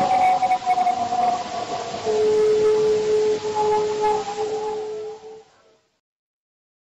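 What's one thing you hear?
A wolf howls long and mournfully.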